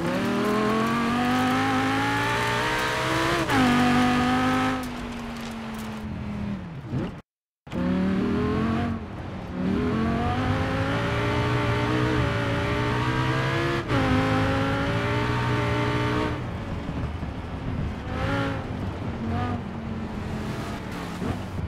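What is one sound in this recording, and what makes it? A car engine roars, revving up and dropping as gears shift.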